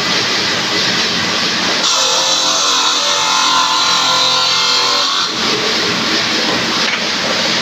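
A circular saw grinds loudly through stone with a high whine.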